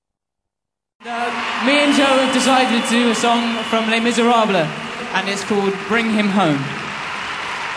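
A young man sings into a microphone over a loudspeaker system.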